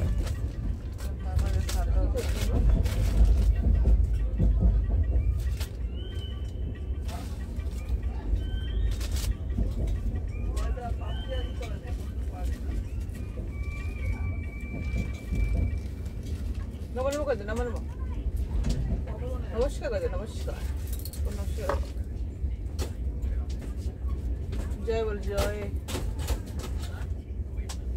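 A train rumbles steadily, heard from inside a carriage.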